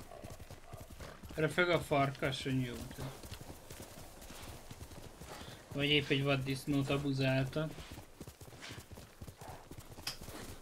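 A horse gallops over grass.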